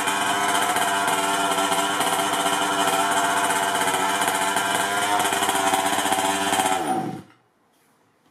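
A small nitro engine roars loudly at high revs, then winds down and stops.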